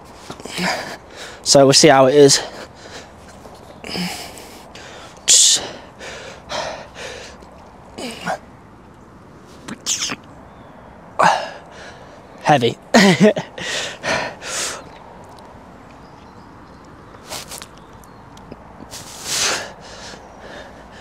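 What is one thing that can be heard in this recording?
A young man breathes out hard with effort.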